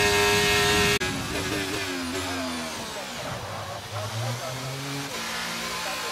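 A racing car engine drops sharply in pitch as the car brakes and gears down.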